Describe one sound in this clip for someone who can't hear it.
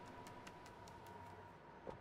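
A cat's paws patter softly on hard steps.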